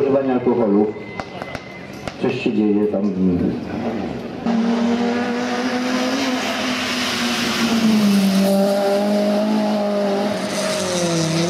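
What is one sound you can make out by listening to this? A rally car engine revs hard and roars as the car accelerates uphill.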